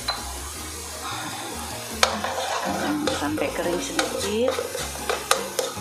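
A thick paste sizzles softly in a hot pan.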